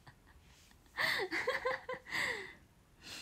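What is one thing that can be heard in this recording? A young woman laughs emotionally close by.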